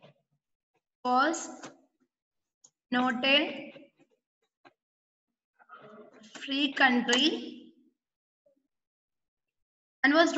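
A woman speaks calmly through an online call, in short phrases.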